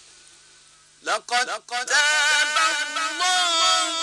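A man chants loudly in a long, wavering melodic voice through a microphone.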